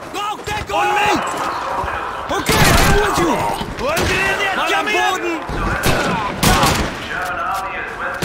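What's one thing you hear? A submachine gun fires short bursts close by.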